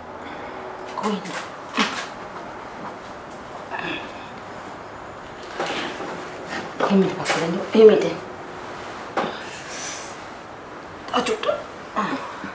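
A woman speaks anxiously in short bursts nearby.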